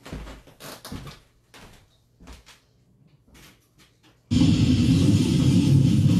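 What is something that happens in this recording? Footsteps and small knocks sound close by.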